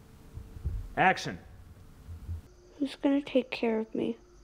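A woman speaks briefly nearby.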